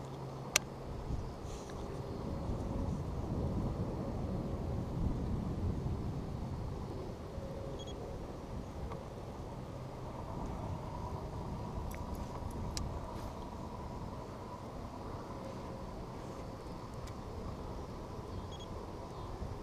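A fishing reel clicks and whirs as its handle is cranked.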